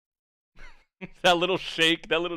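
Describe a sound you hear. A young man speaks cheerfully and close into a microphone.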